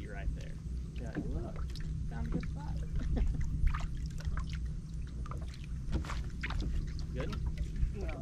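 Water laps gently against a boat hull.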